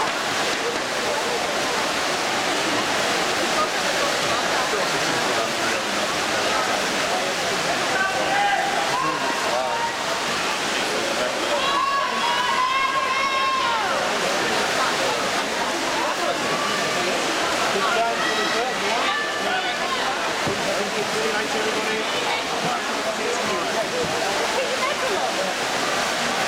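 Swimmers splash through the water with butterfly strokes.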